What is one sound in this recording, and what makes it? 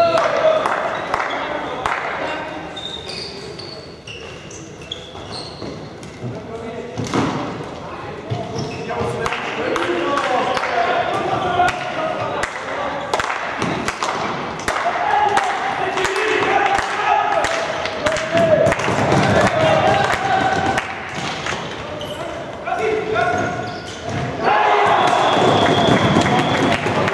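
Balls and sticks clack sharply across a large echoing hall.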